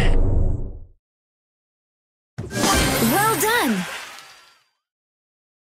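A cheerful victory jingle plays.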